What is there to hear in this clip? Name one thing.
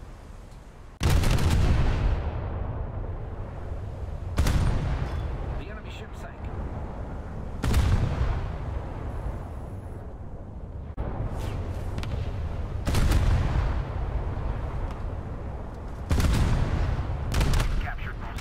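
Heavy ship guns fire in loud, deep booming blasts that roll away.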